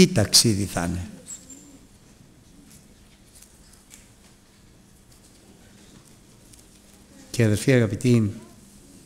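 A middle-aged man speaks slowly and deliberately into a microphone, pausing between phrases.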